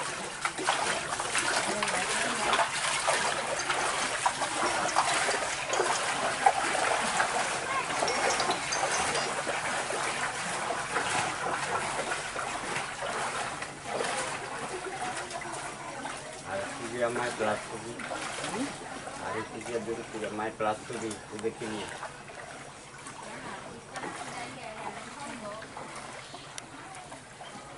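Feet splash and slosh through shallow water.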